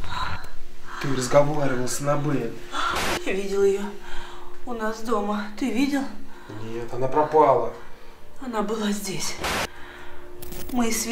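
A young woman speaks in a shaky, breathless voice close by.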